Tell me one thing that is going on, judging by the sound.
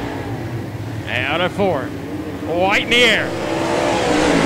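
A race car engine revs up and down as it passes close by.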